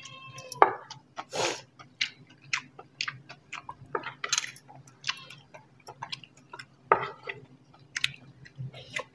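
A man and a woman chew and smack their lips loudly while eating.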